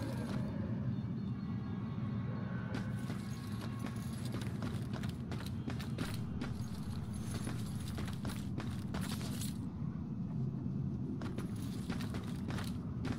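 Footsteps walk steadily over stone paving.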